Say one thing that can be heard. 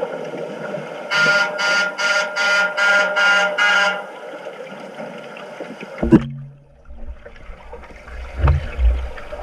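Swim fins kick and splash through the water.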